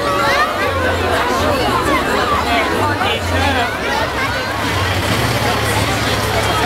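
A large outdoor crowd chatters and cheers all around.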